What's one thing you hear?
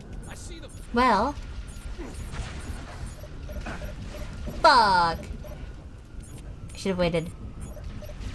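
A sci-fi weapon fires with a loud swooping electronic whine.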